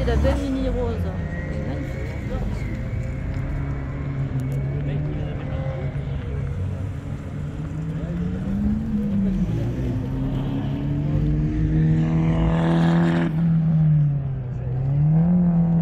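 Car engines rumble steadily nearby.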